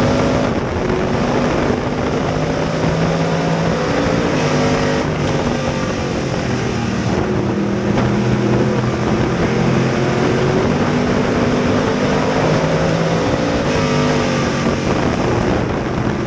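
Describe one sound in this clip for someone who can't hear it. A race car engine roars loudly up close, revving up and down.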